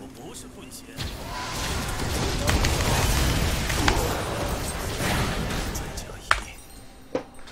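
Magic blasts and clashing sound effects burst out during a fight.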